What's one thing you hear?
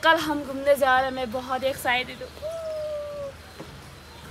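A young woman sings loudly nearby.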